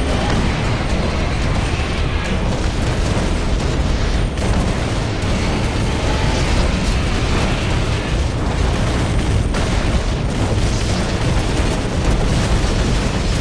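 Explosions boom and rumble one after another.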